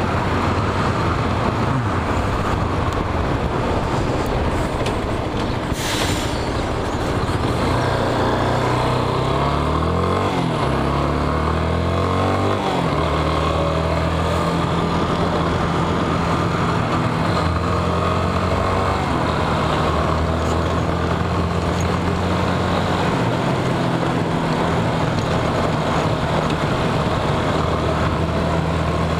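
A motorcycle engine hums and revs, rising and falling in pitch as it changes speed.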